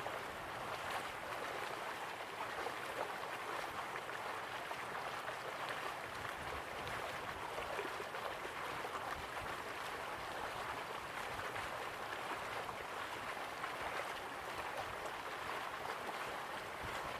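A waterfall roars steadily.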